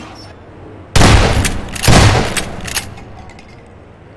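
A metal locker door creaks open and bangs.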